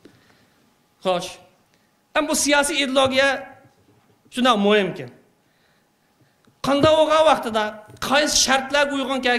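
A man speaks steadily through a microphone, heard over a loudspeaker in a hall.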